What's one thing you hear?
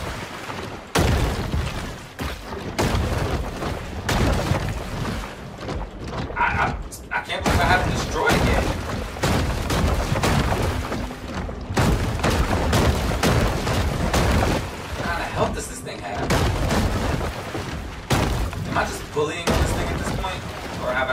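Muffled underwater blasts and thuds rumble repeatedly.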